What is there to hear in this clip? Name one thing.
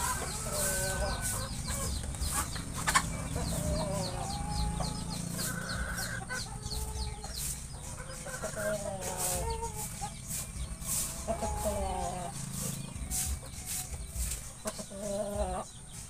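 Birds call repeatedly close by.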